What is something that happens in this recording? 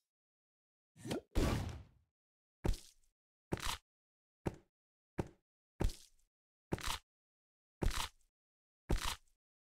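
Blocks pop and burst with short bright game sounds, again and again.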